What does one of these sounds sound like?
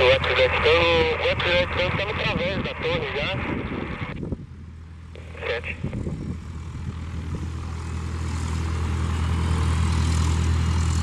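A small jet's engines hum and whine steadily, growing louder as the jet turns toward the listener.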